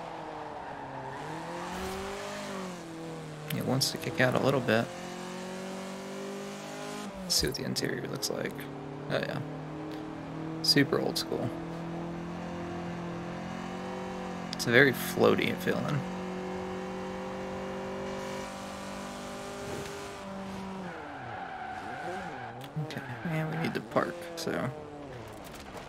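A car engine drones and revs up through the gears.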